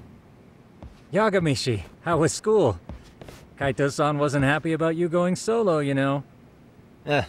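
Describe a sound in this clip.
A young man speaks casually and close by.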